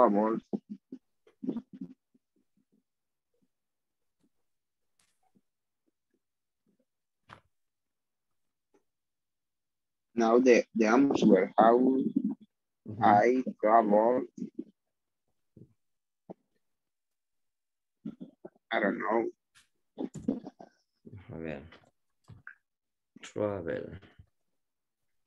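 A young man speaks calmly over an online call, with pauses.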